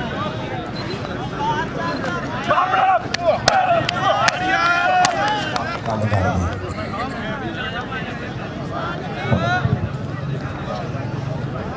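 A large outdoor crowd of men chatters and calls out.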